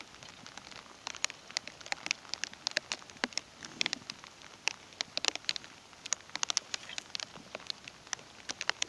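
A fishing reel clicks and ticks in quick, uneven bursts.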